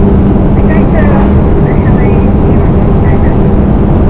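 A car passes by in the opposite direction.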